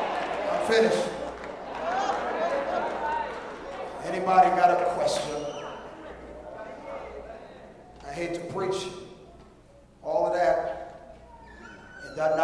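A man preaches with passion into a microphone, his voice echoing through a large hall.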